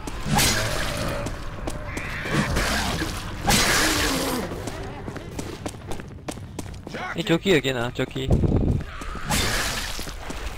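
Rifle shots ring out loudly, one after another.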